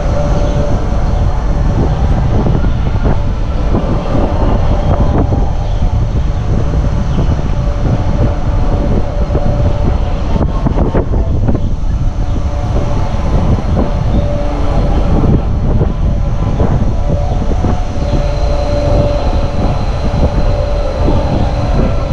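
Metal chains creak on a spinning swing ride.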